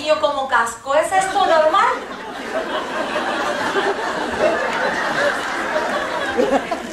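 Several women laugh softly together in an audience.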